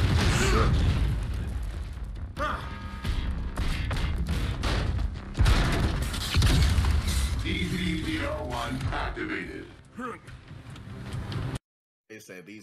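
Explosions boom and gunfire rattles in a video game.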